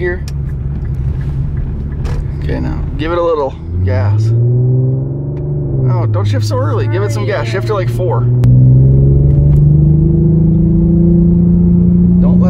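A car engine hums steadily and rises in pitch as it speeds up.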